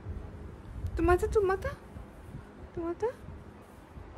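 A kitten meows several times.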